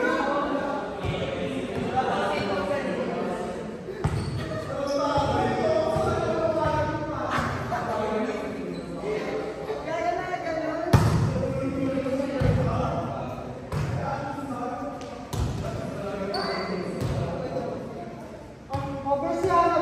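A volleyball is struck with sharp smacks that echo in a large hall.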